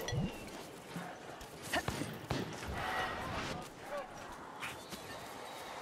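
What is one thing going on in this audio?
Weapons swing and strike with sharp thuds in a fight.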